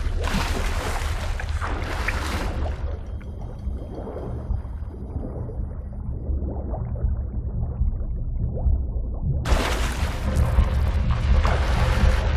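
Water splashes as a swimmer strokes at the surface.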